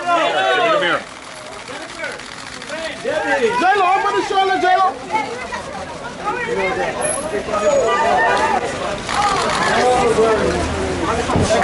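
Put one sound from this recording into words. A crowd of people shout and call out excitedly close by.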